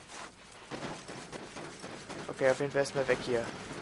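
Footsteps run quickly across a metal roof.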